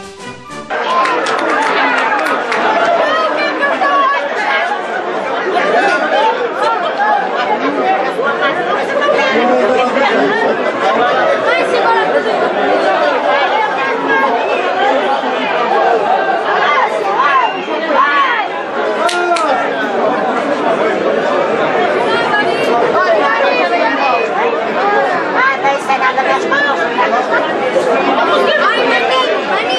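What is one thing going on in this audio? A large crowd of men, women and children shouts and chatters outdoors.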